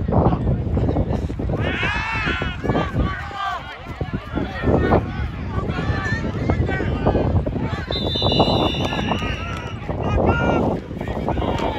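A crowd in the stands cheers and shouts outdoors.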